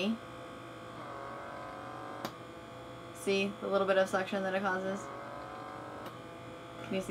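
A small electric device hums steadily.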